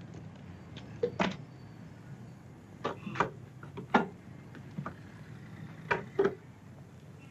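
A case lid clicks and thumps as it is opened.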